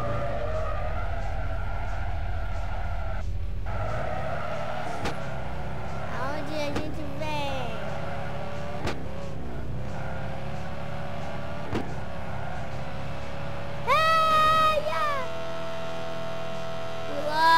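A racing car engine roars and revs higher as it speeds up.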